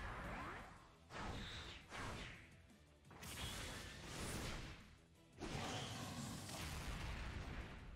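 Energy blasts boom and crackle.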